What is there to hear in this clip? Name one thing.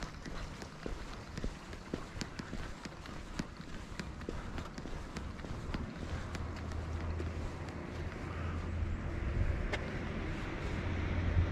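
Footsteps tap on a paved sidewalk.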